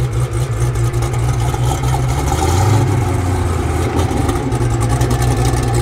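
A sports car engine idles with a deep, loud rumble close by.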